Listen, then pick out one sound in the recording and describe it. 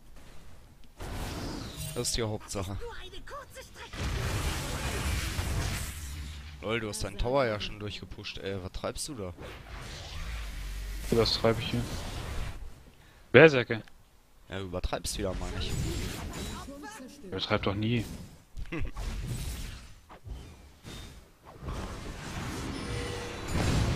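Video game fighting sounds clash and whoosh in quick bursts.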